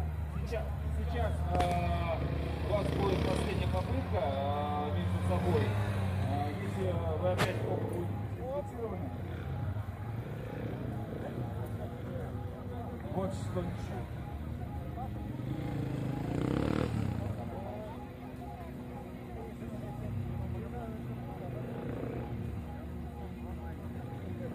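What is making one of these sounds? A motorcycle engine revs and rumbles as it circles nearby.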